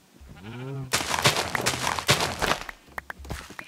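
A hoe crunches as it tills dirt.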